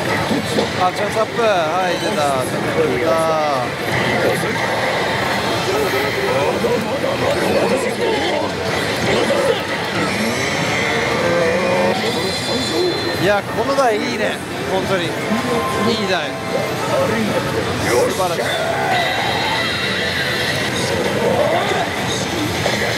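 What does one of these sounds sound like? A slot machine plays loud electronic music and sound effects.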